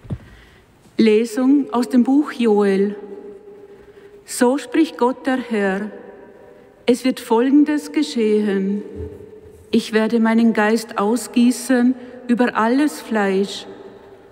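A middle-aged woman speaks calmly into a microphone in a large echoing hall.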